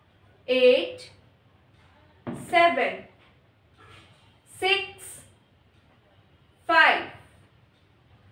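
A young woman speaks clearly in short, spaced phrases close by.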